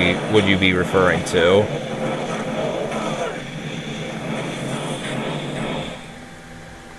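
Fiery spells burst and crackle.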